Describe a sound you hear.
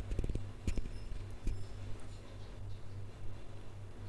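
Fingers tap lightly on a touchscreen.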